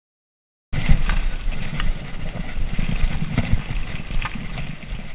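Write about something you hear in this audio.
Wind buffets a microphone on a moving bike.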